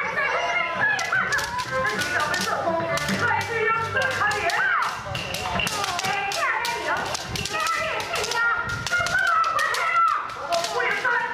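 Bamboo swords clack sharply against each other and against armour.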